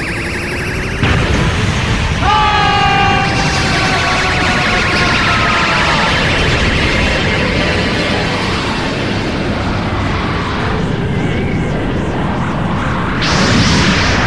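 An energy blast roars and crackles loudly.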